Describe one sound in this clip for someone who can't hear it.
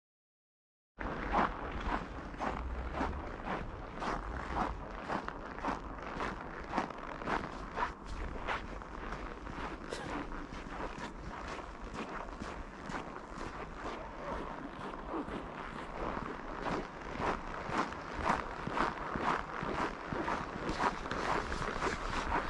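Footsteps crunch steadily on packed snow.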